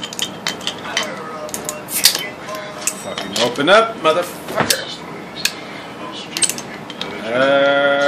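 Metal pliers clink against a glass bottle cap.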